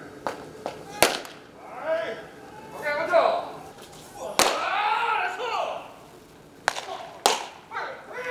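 A baseball smacks into a catcher's glove with a sharp pop.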